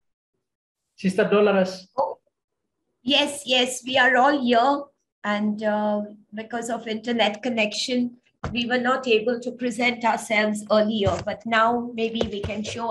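A woman speaks close to the microphone over an online call.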